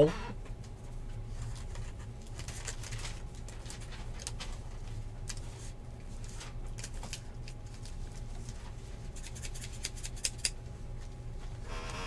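Scissors snip through a plastic wrapper.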